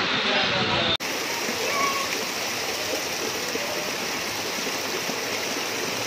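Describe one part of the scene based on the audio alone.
Rainwater rushes and splashes along a flooded street.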